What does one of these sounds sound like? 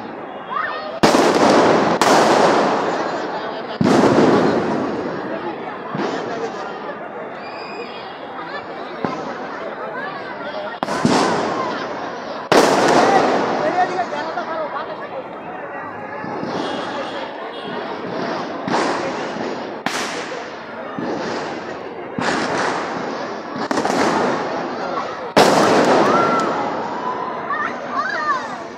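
Fireworks crackle and fizz in the night sky.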